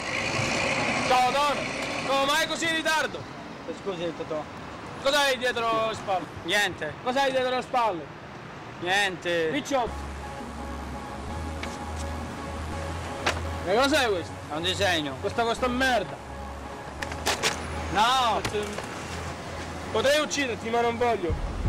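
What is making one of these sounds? Young men talk back and forth outdoors, close by.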